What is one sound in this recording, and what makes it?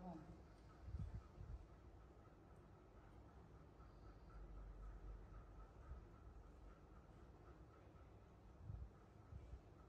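Nut shells crack softly as they are peeled by hand.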